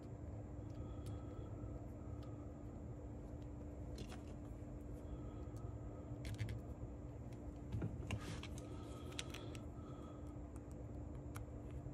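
Thin wires rustle and small metal parts click softly under fingers.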